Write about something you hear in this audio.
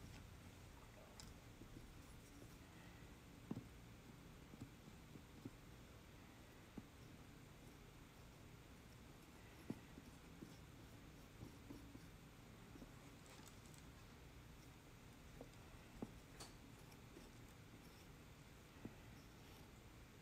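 A metal tool scrapes and taps softly against dry clay.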